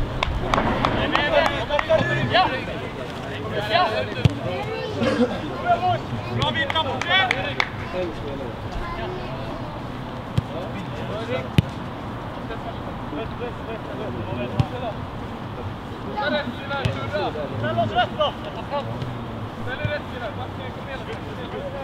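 Young men shout to each other across an open pitch.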